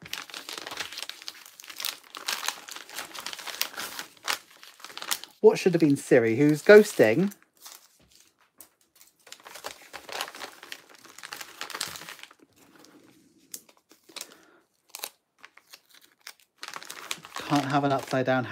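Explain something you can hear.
A padded paper envelope rustles as hands fold and press it.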